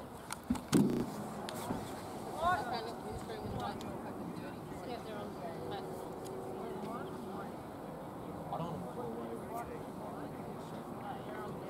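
Distant men shout and call out across an open field.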